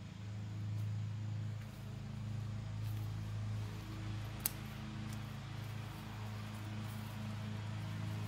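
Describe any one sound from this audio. Garden shears snip through herb stems.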